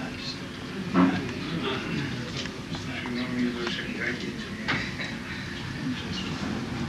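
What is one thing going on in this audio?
An elderly man speaks calmly into a microphone in a room with some echo.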